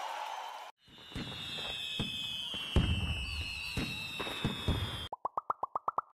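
Fireworks burst and crackle.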